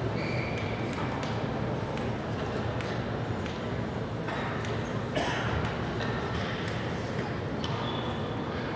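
A table tennis ball taps lightly on a paddle and table.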